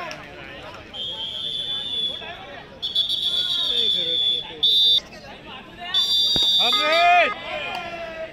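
A referee's whistle blows in long, shrill blasts.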